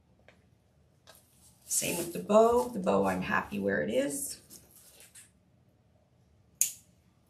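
Stiff mesh ribbon rustles and crinkles under hands.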